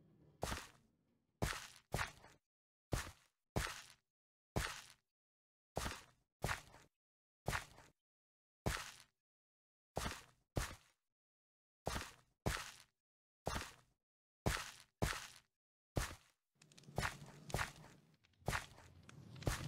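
Footsteps thud steadily on wooden steps.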